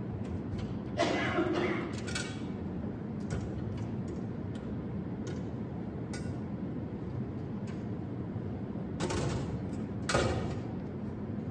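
A metal tabernacle door clicks and clinks as it is opened and closed.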